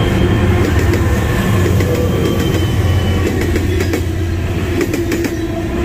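Diesel locomotives rumble loudly close by.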